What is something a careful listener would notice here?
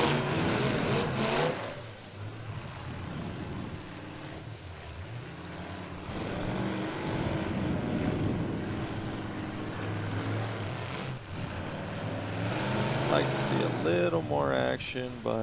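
Car engines rumble and rev loudly.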